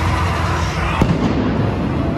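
Pyrotechnics burst with a loud bang.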